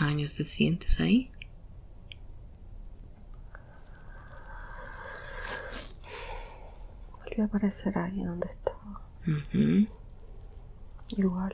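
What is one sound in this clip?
A young woman snores loudly in short bursts close by.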